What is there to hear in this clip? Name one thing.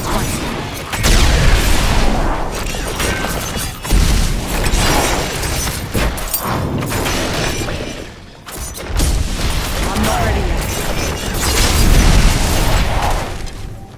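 Heavy blows and explosions boom with deep rumbles.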